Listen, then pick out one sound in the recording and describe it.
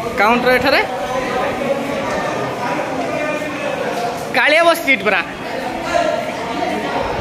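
People murmur and chatter in a large echoing hall.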